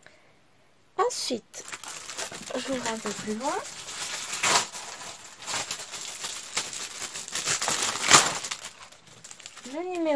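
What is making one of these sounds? Glossy paper magazines rustle and slide as they are handled.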